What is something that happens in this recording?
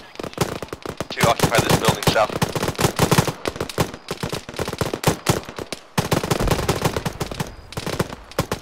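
A rifle fires loudly in rapid bursts, close by.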